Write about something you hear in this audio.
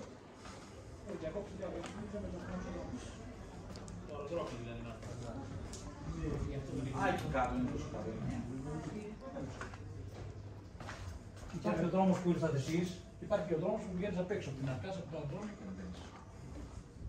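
Elderly men talk calmly nearby.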